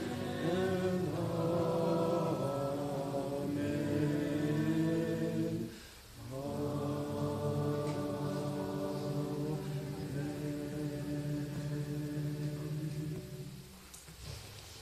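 A man sings steadily through a microphone in an echoing room.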